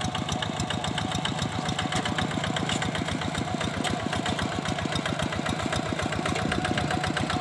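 Water and mud splash under the wheels of a walking tractor.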